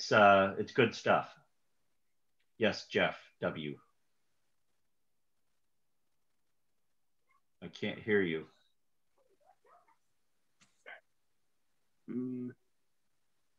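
A middle-aged man speaks calmly into a microphone, heard through an online call, in short bursts with pauses.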